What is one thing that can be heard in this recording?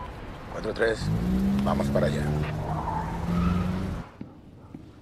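A car engine revs as a car pulls away.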